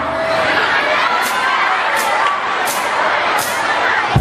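A rock band plays.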